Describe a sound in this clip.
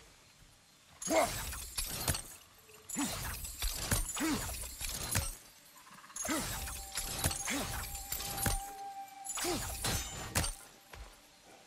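Hands grip and scrape against rock in bursts.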